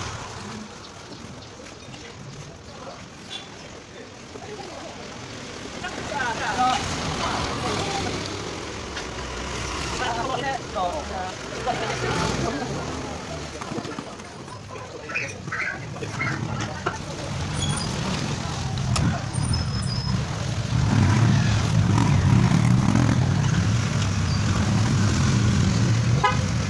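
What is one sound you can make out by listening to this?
A trowel scrapes wet cement on a concrete step.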